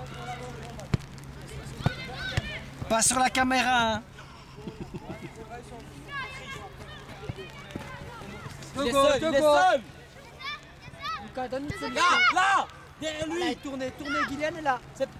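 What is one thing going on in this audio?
Young children shout and call out across an open field.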